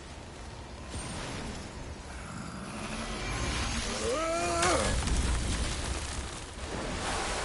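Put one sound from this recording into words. A burst of frost hisses and crackles.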